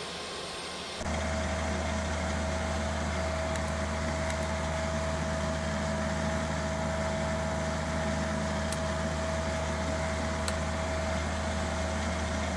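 A steady low hum of aircraft systems fills a cockpit.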